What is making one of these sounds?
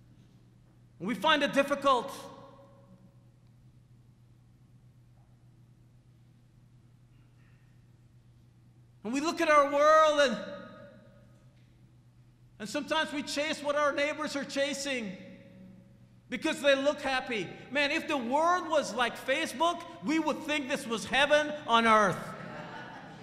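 A man preaches with animation into a microphone, in bursts with long pauses.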